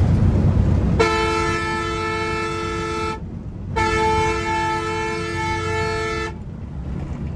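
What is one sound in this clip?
A bus horn blares loudly in two long blasts.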